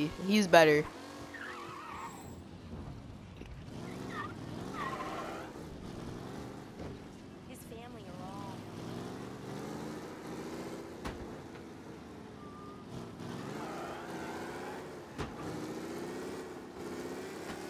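A car engine hums and revs as it drives.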